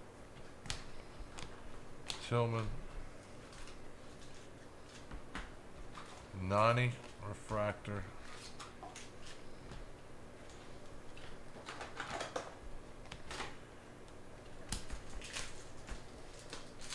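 Trading cards rustle and flick as they are shuffled by hand.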